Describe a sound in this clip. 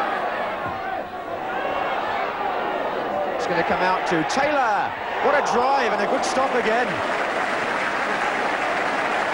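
A large crowd roars and chants in a big open stadium.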